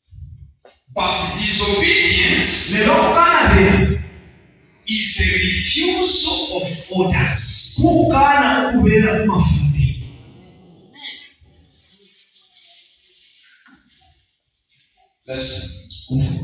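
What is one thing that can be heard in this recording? A man preaches loudly and with animation through a microphone in an echoing hall.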